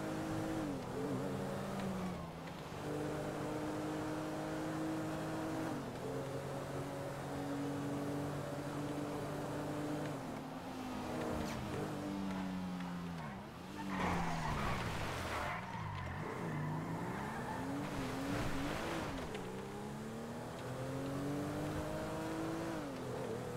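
A car engine roars and shifts up through the gears at speed.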